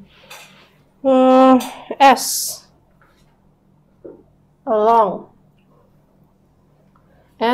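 A woman speaks clearly and slowly nearby, as if teaching.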